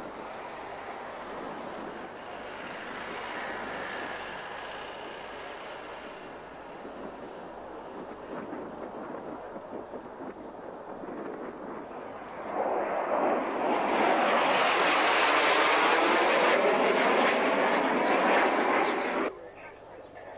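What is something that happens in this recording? A stealth jet roars as it flies low past.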